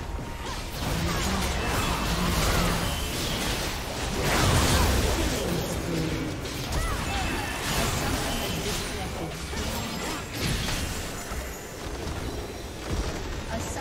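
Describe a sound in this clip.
Game spell effects whoosh and crackle in a battle.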